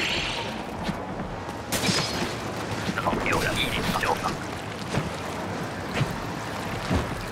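A game countdown ticks once every second.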